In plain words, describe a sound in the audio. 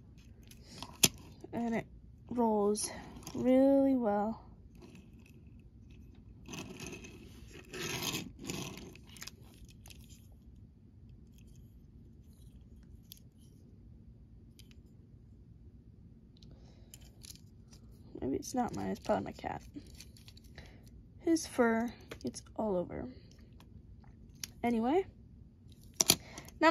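A small plastic toy car taps and rattles on a wooden tabletop.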